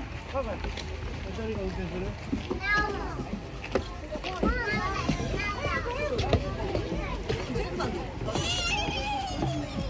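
Children's high voices call out now and then.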